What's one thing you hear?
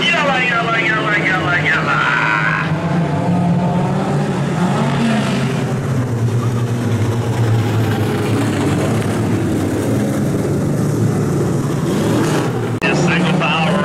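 A race car engine roars steadily.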